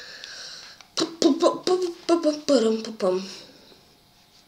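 A boy speaks close to a microphone with animation.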